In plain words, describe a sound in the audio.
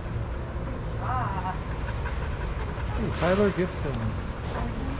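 A dog whines in short high yelps.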